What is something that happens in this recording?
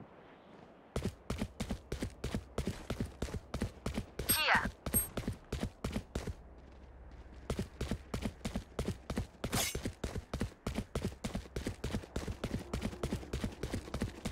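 Footsteps tap quickly and evenly on stone.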